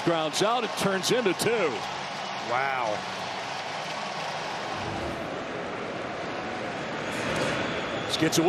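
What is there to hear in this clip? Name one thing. A large stadium crowd cheers and murmurs.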